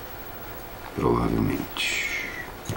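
A middle-aged man speaks briefly and quietly nearby.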